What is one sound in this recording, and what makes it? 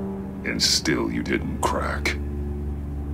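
An older man speaks in a sly, mocking tone.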